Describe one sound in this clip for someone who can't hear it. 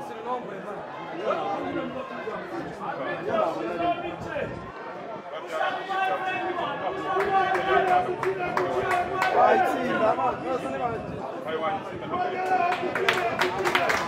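A crowd chants and sings loudly in an open stadium.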